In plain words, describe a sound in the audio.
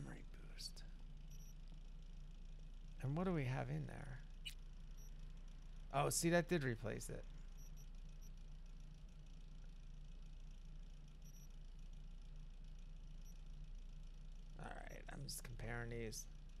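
Short electronic blips sound as menu items are selected.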